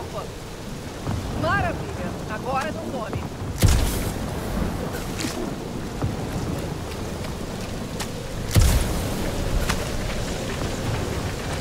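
Footsteps thud on soft ground.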